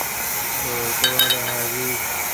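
Metal tools clink together.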